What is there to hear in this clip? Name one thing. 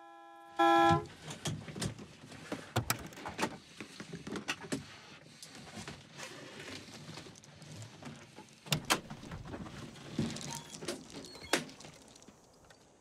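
A man rummages and knocks around inside a vehicle cab.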